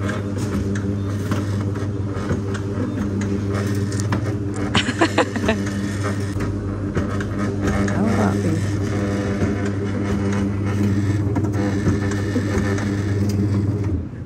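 A juicing machine hums steadily.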